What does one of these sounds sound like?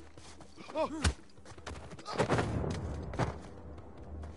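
Heavy blows thud in a close scuffle.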